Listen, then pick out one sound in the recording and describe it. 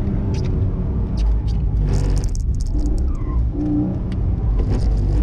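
A car engine roars loudly from inside the cabin, rising and falling in pitch.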